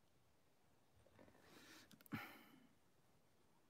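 A young man gives a soft, breathy exclamation close by.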